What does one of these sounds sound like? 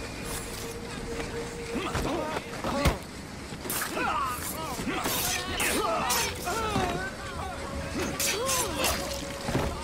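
Blows land with sharp thuds during a fight.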